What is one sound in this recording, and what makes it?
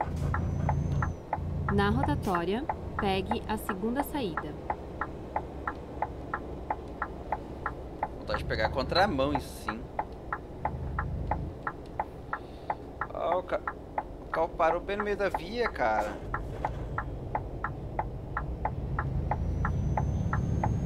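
A truck engine hums low and steadily.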